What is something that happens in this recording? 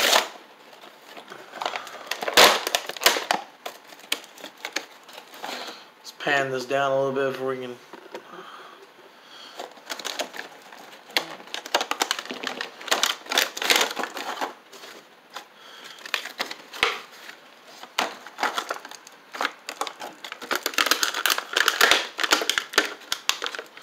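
Stiff plastic packaging crinkles and crackles close by.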